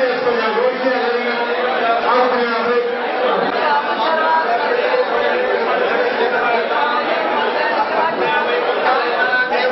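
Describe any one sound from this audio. A crowd of men chant together nearby.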